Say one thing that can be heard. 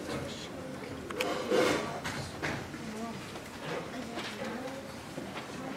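A band plays softly in a large echoing hall.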